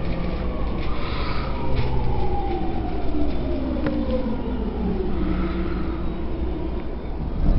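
A train's motors whine and drop steadily in pitch as the train slows down.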